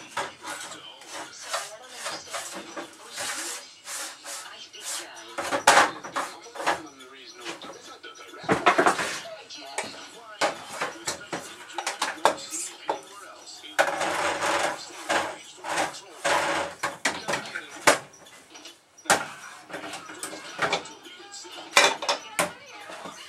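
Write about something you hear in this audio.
Voices play tinnily through a small television speaker.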